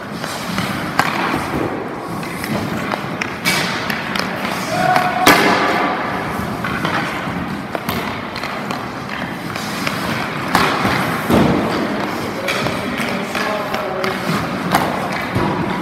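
A puck cracks against goalie pads and boards.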